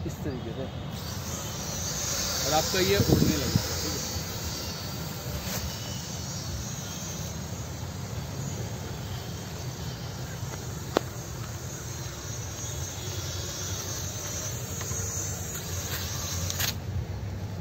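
A toy drone's propellers whir steadily overhead.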